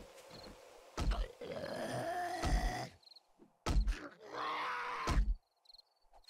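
A blunt weapon thuds repeatedly into a body.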